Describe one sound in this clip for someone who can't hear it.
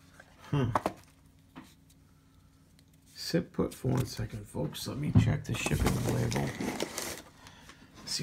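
Plastic bubble wrap crinkles.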